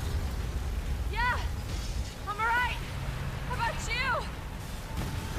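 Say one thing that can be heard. A young woman answers loudly.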